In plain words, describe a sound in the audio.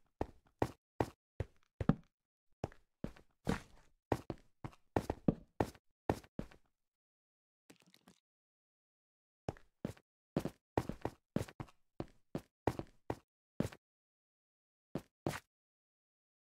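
Footsteps tread on stone at a steady pace.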